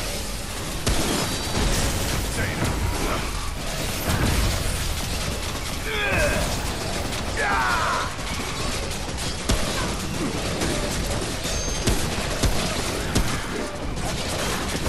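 Guns fire in rapid bursts with heavy booms.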